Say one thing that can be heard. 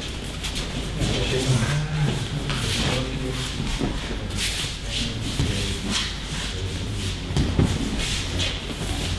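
A man talks in a large echoing hall.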